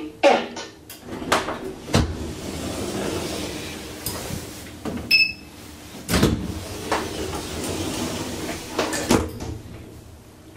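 Sliding elevator doors rattle and thud as they open and close.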